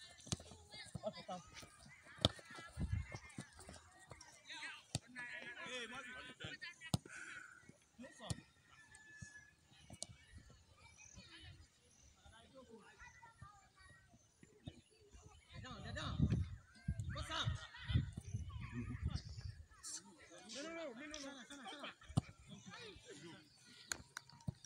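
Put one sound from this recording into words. A football thuds when kicked.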